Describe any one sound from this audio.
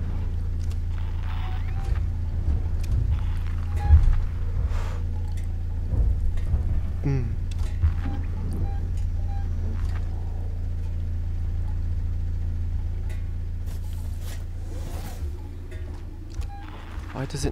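A motion tracker beeps softly.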